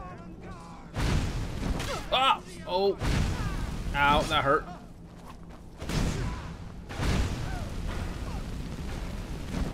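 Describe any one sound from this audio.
Flames burst and roar loudly.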